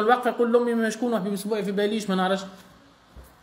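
An elderly man speaks firmly and emphatically.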